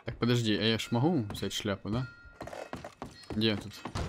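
Boots thud on wooden boards.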